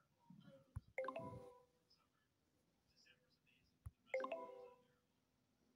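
A word puzzle game plays a bright chime as its letters shuffle.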